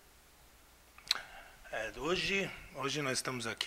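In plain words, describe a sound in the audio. A man speaks calmly and close into a handheld microphone.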